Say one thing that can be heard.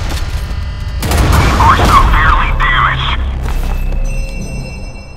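Loud explosions boom and crackle.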